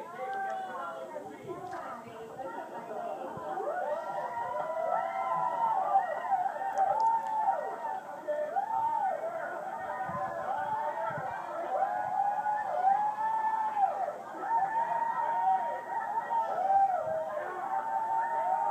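A group of women sings with feeling, heard through a television speaker.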